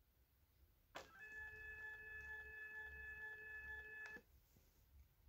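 An electronic device gives a steady high beep.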